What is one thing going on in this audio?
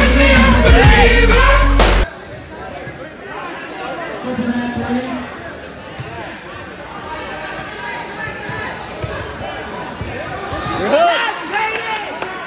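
Adults shout loudly close by.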